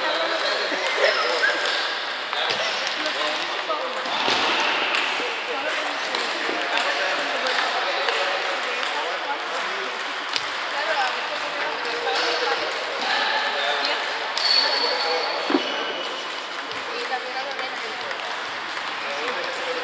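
A ping pong ball clicks sharply against paddles and a table.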